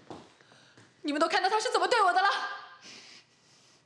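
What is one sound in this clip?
A young woman speaks loudly and indignantly.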